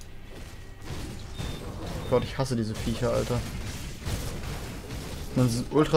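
Magic blasts burst and crackle in a fight.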